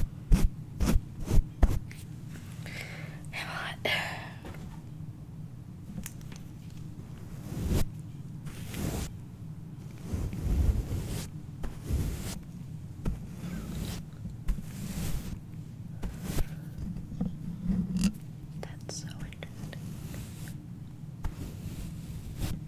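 A makeup brush brushes and taps against a microphone.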